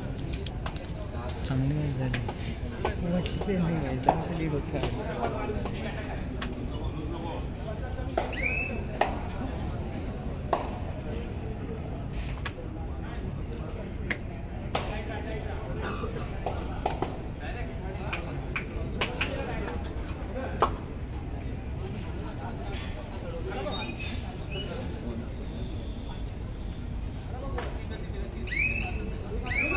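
Players' feet scuff and slap on the dirt court.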